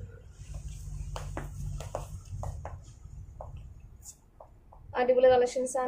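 Fabric rustles as cloth is handled.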